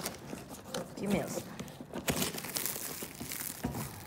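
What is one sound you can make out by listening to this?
Cardboard packaging tears.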